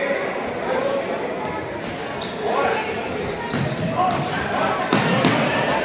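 A ball is kicked with a sharp thump.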